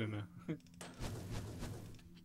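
A pickaxe chips at stone.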